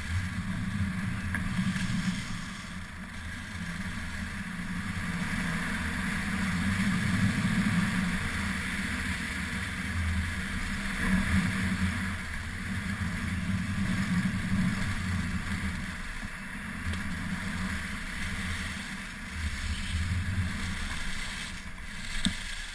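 Wind rushes past a moving microphone.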